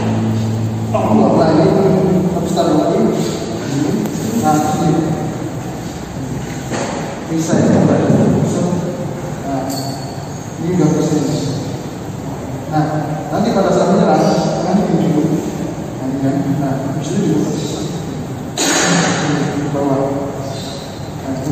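A middle-aged man speaks calmly in an echoing bare room.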